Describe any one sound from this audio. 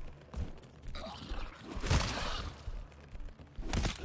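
A creature snarls and screeches close by.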